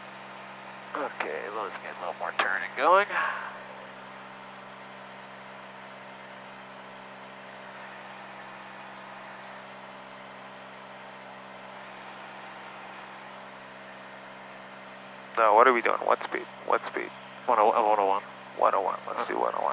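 A man speaks briefly over a headset intercom.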